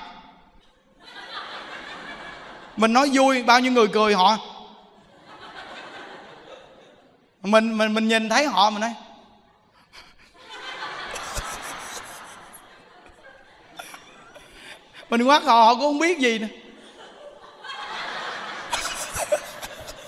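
A large crowd laughs together.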